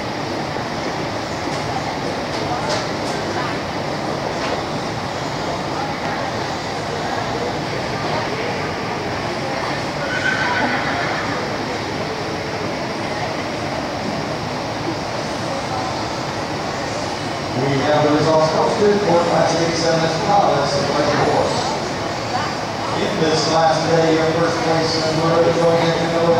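Spectators murmur in a large echoing hall.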